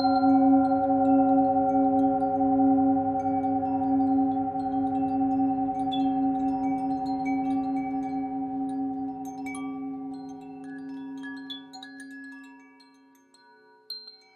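A metal singing bowl rings with a deep, wavering hum that slowly fades.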